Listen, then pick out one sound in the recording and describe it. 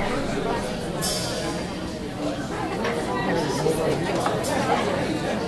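Cymbals crash on a drum kit.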